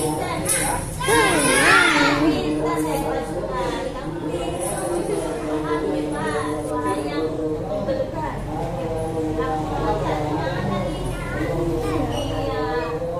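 Young children chatter and call out excitedly.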